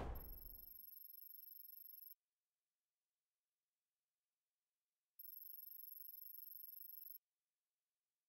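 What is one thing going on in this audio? Rapid electronic ticks sound as text types out.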